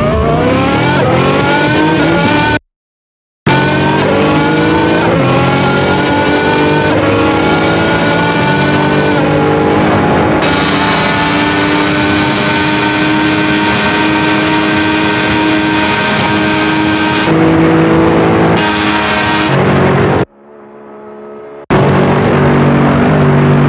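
A car engine roars, climbing in pitch and dropping back with each gear change.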